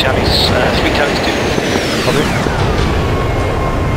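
A jet roars past and its whine drops in pitch.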